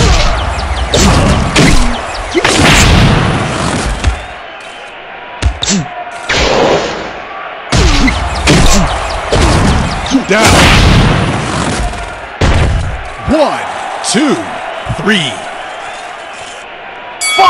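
Heavy punches land with loud, booming impacts.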